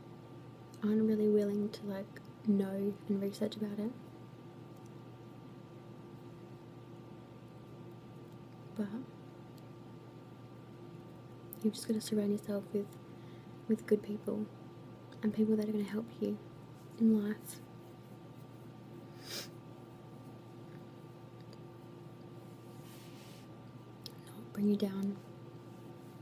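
A young woman speaks softly and close to a microphone, in short phrases with pauses.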